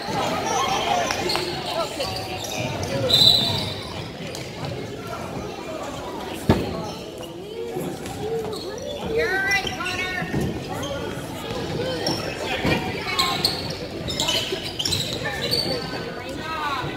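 Sneakers squeak sharply on a hard gym floor.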